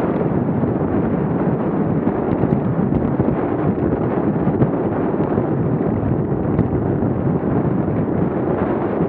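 Wind rushes loudly over the microphone.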